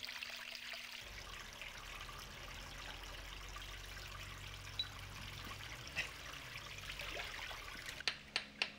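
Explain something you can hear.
Water pours from a spout into a basin.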